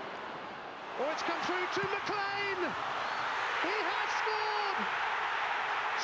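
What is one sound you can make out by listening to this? A large stadium crowd erupts into a loud roar.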